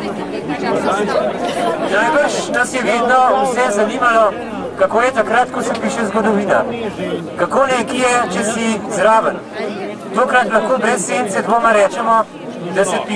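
A man reads out loud into a microphone, heard through a loudspeaker.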